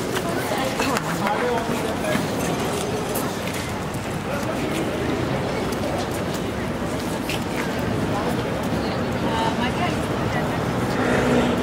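City traffic hums steadily.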